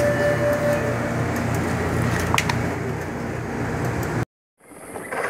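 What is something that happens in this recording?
A drink machine hums steadily close by.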